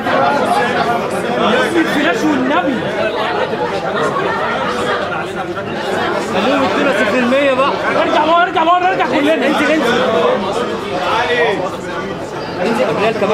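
A crowd of men and women chatter loudly and overlap close by.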